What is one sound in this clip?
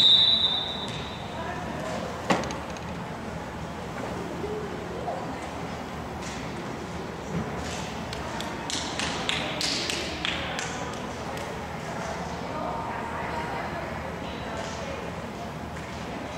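Young women call out and chatter across the court.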